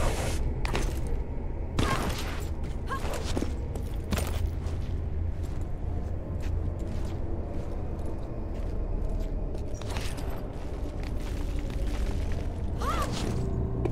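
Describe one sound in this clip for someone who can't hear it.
Hands scrape and grip on stone ledges.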